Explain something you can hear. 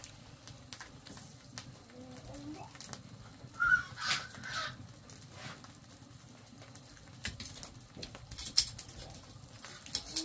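A wood fire crackles and pops softly.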